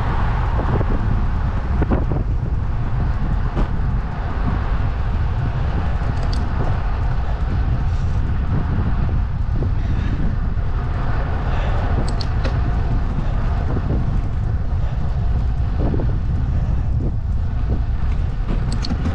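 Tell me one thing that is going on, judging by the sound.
Wind rumbles steadily against a moving microphone outdoors.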